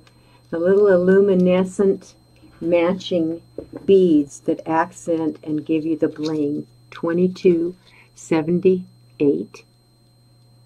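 An older woman talks with animation close to a microphone.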